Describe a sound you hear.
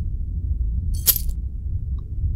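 A short bright chime rings as a key is picked up.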